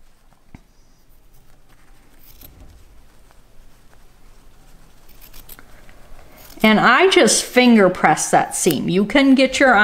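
Small thread snips click as threads are trimmed close by.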